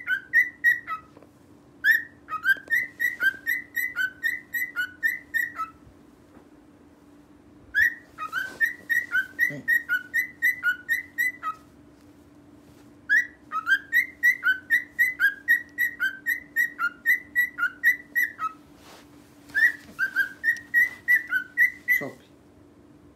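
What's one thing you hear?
A cockatiel whistles a repeating, chirpy tune in bursts.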